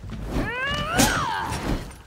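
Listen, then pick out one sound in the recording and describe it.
Metal blades clash with a sharp ring.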